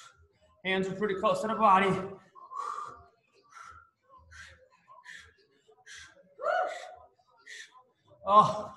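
A man talks with energy through a microphone in an echoing hall.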